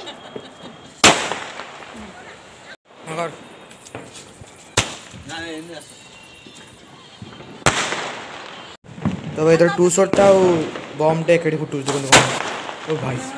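Firecrackers burst nearby with sharp, loud bangs.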